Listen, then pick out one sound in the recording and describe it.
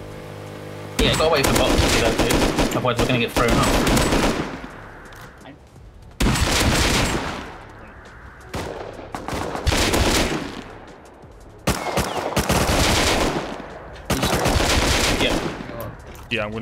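A rifle fires bursts of rapid shots.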